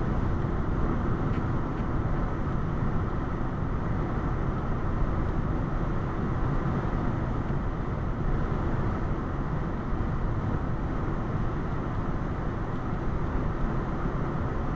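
A car's engine and tyres rumble steadily on the road from inside the car.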